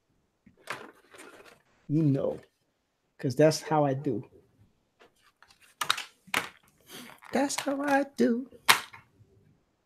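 A plastic package crinkles as hands handle it.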